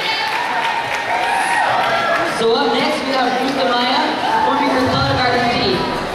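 A young man sings into a microphone, heard through loudspeakers in a large echoing hall.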